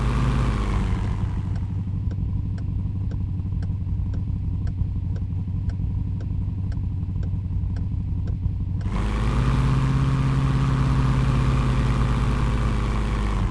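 A car engine hums steadily and rises as the car speeds up.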